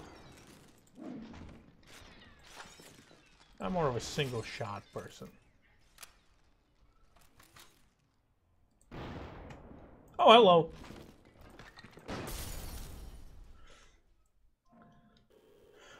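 Glass-like figures shatter into pieces.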